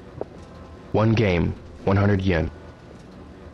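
An arcade machine plays two short electronic jingles.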